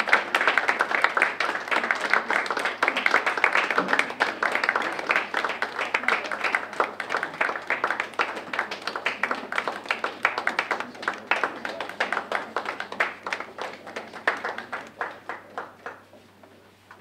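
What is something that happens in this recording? An audience claps steadily, then the clapping dies away.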